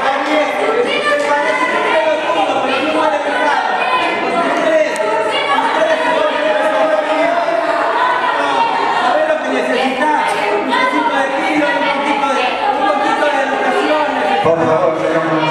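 A woman shouts angrily and with animation.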